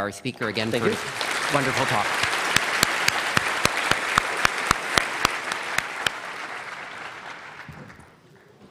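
An audience laughs and applauds, then fades out.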